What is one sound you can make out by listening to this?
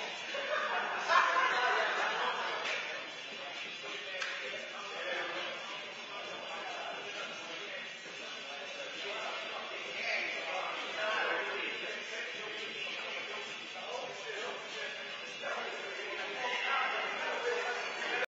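Adult men talk at a distance in an echoing hall.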